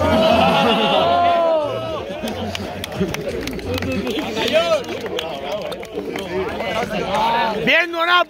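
Young men shout with excitement.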